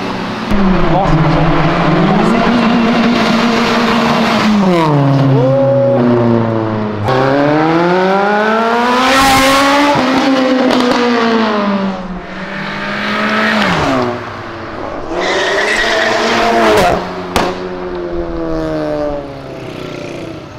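Car engines rev loudly and roar past one after another.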